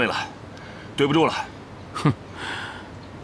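A middle-aged man speaks briefly and calmly.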